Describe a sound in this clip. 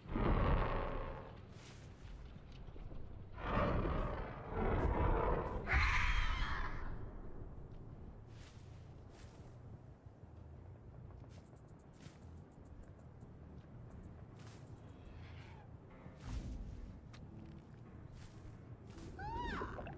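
Footsteps crunch steadily on dirt ground.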